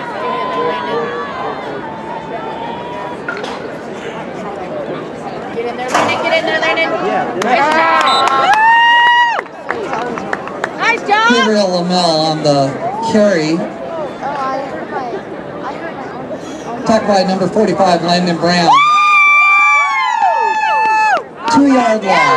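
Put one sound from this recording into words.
A crowd of spectators cheers and shouts loudly outdoors.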